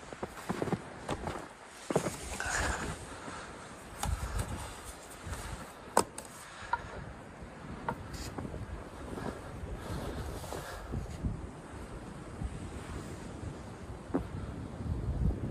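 Footsteps crunch in deep snow.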